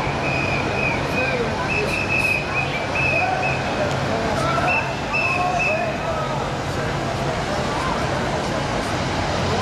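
A car engine hums as a vehicle drives slowly closer.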